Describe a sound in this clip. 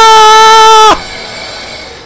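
A young man screams loudly into a close microphone.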